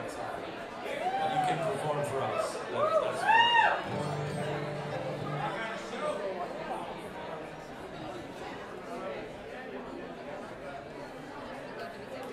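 A fiddle plays swooping, sliding phrases.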